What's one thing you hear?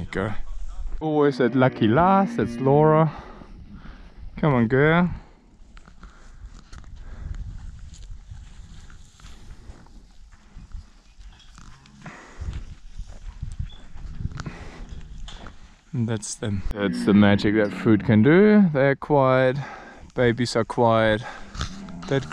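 A camel groans and bellows nearby.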